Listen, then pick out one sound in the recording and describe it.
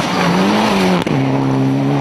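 Tyres spray gravel as a rally car slides through a bend.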